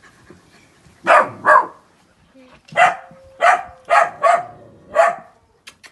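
A dog pants loudly close by.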